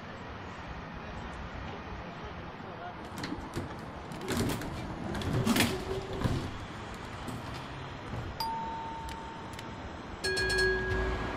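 A tram idles with a low, steady hum.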